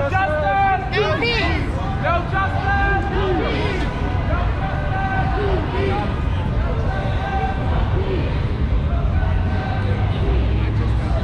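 A crowd of marchers chants and shouts down the street.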